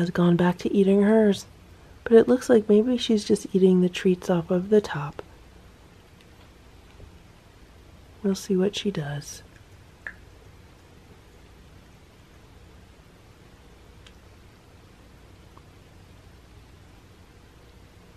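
A cat chews and laps wet food from a plate.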